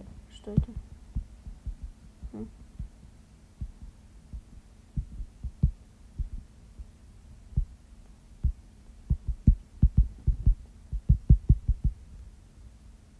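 Laser shots from a video game fire in quick, uneven bursts.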